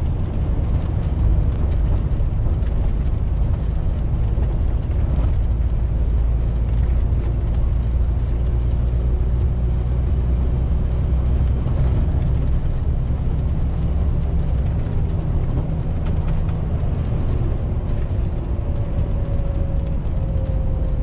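Tyres roar on the road.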